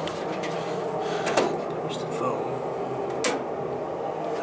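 A metal panel door swings open.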